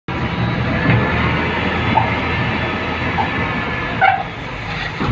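A hydraulic arm whines as it lowers a heavy steel bin.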